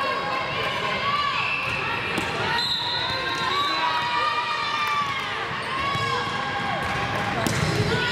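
A volleyball thumps off hands and the floor.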